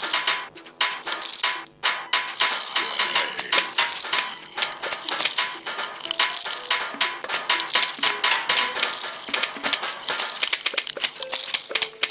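Rapid cartoonish popping shots fire over and over.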